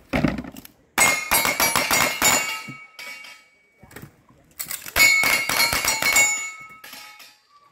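Steel targets ring with a metallic clang when hit.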